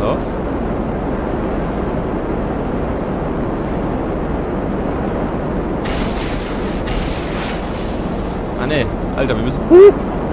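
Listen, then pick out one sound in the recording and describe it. A jet engine roars steadily.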